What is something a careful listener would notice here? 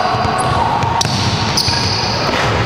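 A basketball thumps on the floor.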